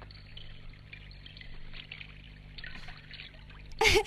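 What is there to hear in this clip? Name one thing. Water drips and splashes softly.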